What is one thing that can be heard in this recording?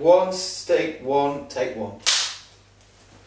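A clapperboard snaps shut.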